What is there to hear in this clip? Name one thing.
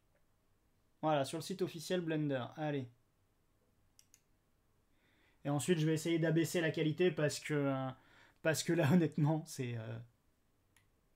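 A man speaks with animation into a headset microphone, close up.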